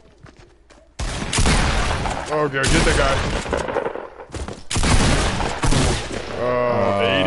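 Gunshots fire in rapid, loud bursts.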